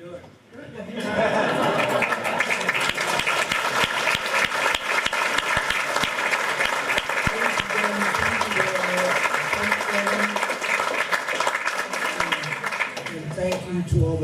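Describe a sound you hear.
An audience claps loudly in a large room.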